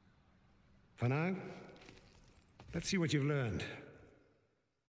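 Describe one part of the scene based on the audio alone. A younger man speaks in a low, firm voice.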